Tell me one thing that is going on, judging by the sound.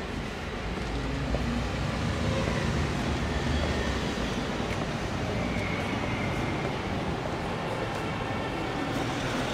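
Street traffic rumbles steadily nearby.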